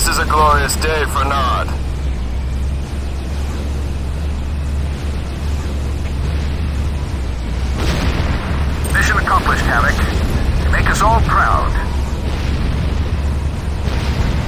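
Electricity crackles and fizzes.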